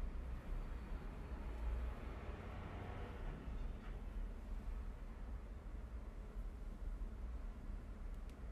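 A comb brushes softly through hair.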